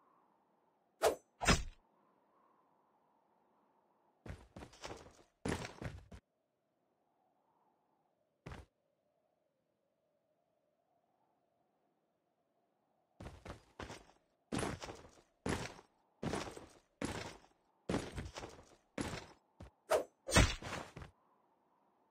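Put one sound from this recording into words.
Heavy melee blows land with sharp thuds.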